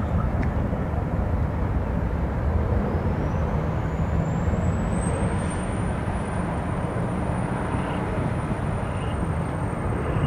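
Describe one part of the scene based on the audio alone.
A jet airliner roars loudly as it climbs overhead.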